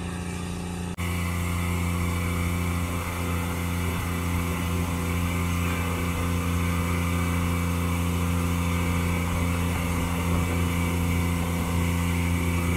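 A grain vacuum machine roars steadily.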